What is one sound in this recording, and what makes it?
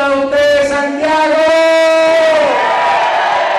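A man shouts a drawn-out chant through a loudspeaker in a large room.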